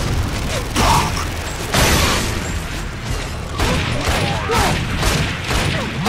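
Gunshots crack in quick bursts amid a loud battle.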